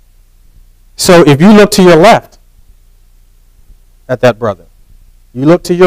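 A man speaks with animation through a microphone.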